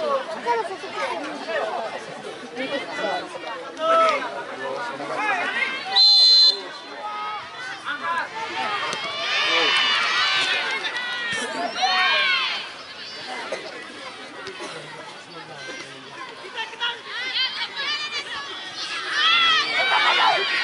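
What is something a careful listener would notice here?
A large outdoor crowd shouts and cheers loudly.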